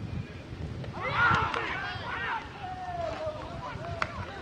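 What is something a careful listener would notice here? Men on a field shout loudly in celebration, heard from a distance outdoors.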